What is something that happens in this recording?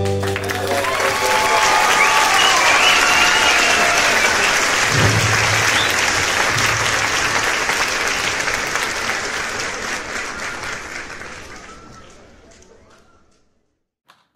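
An audience applauds loudly, then the applause fades away.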